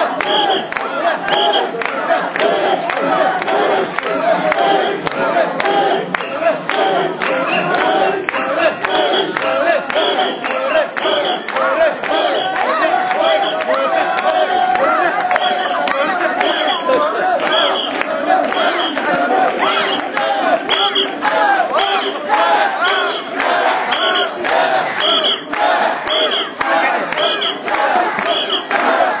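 A large crowd of men chants loudly and rhythmically, close by.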